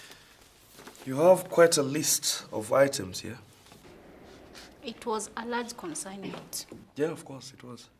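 A man speaks calmly to a woman nearby.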